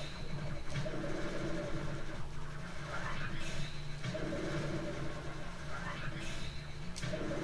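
A spinning blade whooshes through the air again and again.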